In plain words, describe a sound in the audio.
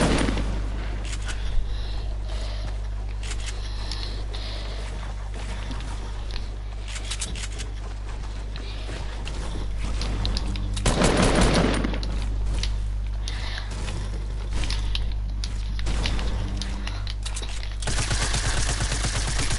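Building pieces knock and clatter into place in quick succession.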